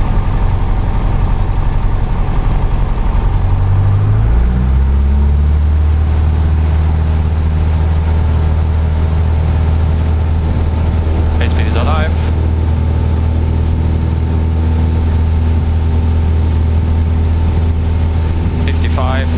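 A small plane's propeller engine drones loudly and revs up.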